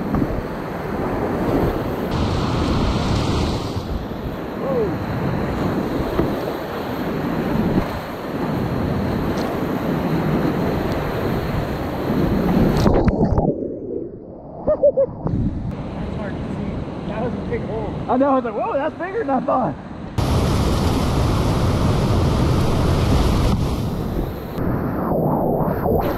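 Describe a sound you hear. Whitewater rapids roar and churn loudly close by.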